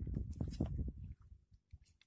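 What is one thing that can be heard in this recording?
A fishing reel whirs as its handle is wound.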